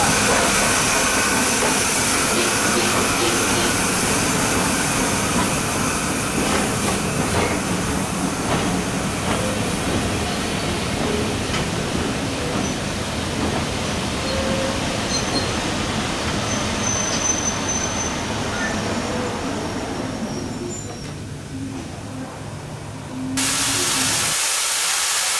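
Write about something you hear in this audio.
Train carriages rumble and clatter over rail joints as they pass close by.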